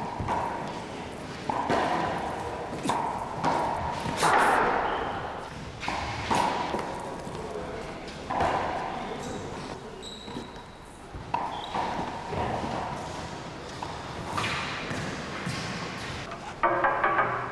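A squash ball smacks against walls, echoing in a large hall.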